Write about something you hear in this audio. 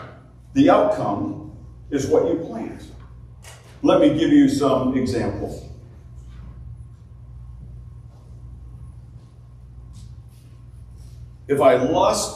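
A middle-aged man speaks calmly through a microphone in a room with some echo, pausing between phrases.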